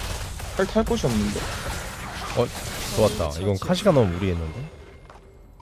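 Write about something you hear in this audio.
Fiery spells burst and crackle in a fight.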